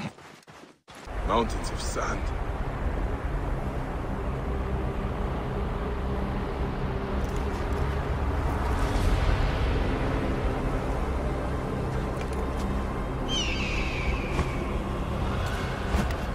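Wind howls in a sandstorm.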